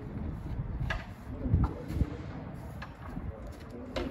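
A camel steps with dull thuds into a metal livestock trailer.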